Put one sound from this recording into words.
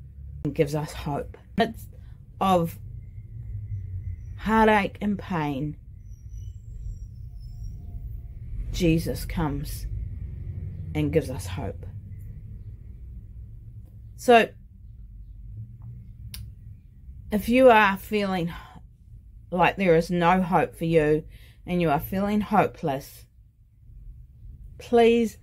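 A middle-aged woman talks with animation close to a microphone, with pauses.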